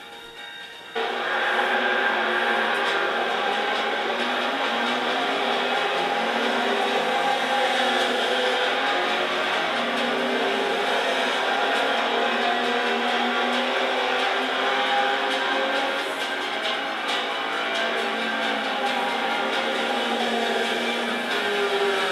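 Racing car engines roar loudly as several cars speed past.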